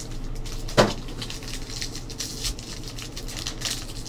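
A foil pack crinkles as it is pulled open.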